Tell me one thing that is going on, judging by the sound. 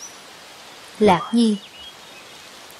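Another young man speaks a single short word, close by.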